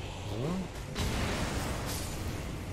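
A fireball bursts with a roaring whoosh.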